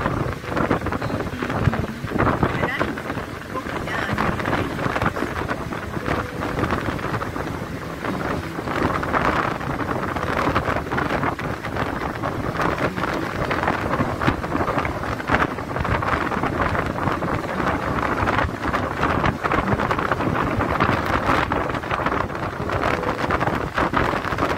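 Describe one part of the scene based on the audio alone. Waves crash and roar on a shore.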